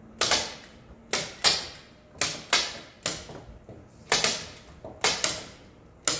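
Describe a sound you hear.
Sharp taps strike a wooden panel in quick pairs, echoing in a large room.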